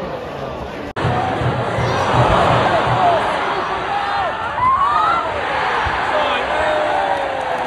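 A crowd of fans cheers loudly as a goal goes in.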